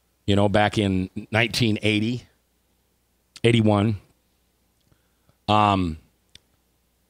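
A man speaks calmly into a close microphone in short bursts.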